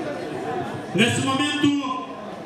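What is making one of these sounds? A man speaks loudly through a microphone over loudspeakers.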